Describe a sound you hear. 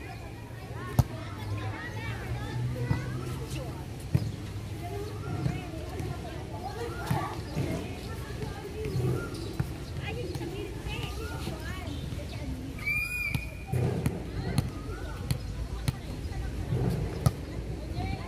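A hand slaps a volleyball on an overhand serve.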